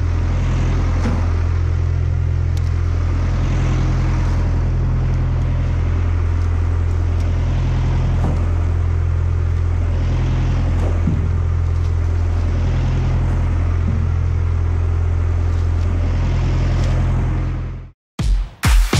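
A tractor engine rumbles steadily close by.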